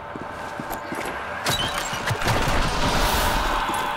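A crate lid clicks open.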